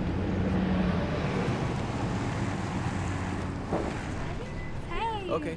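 A van engine hums as the van drives past.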